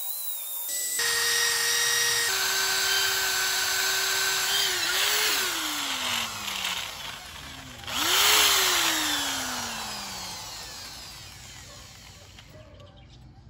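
An electric drill whirs, speeds up and winds down.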